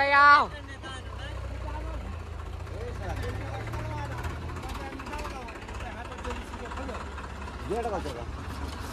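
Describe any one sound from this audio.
Young men talk nearby.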